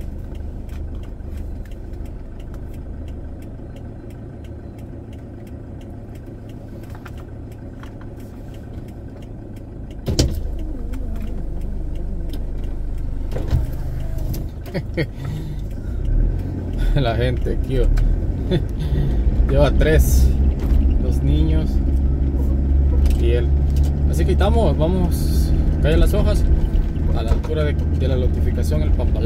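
A car engine rumbles steadily while driving over a rough dirt road.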